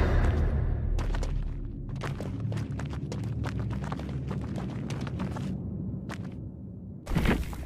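Footsteps rush through dry grass.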